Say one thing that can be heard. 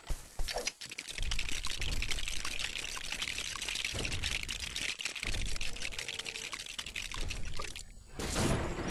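Plastic bricks clatter and click together as a machine is built.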